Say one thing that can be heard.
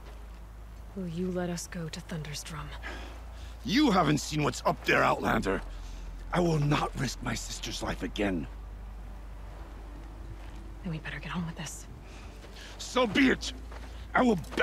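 A young woman speaks with concern.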